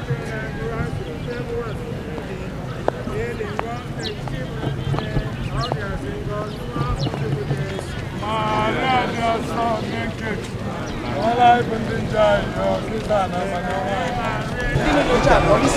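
A group of people sings together outdoors.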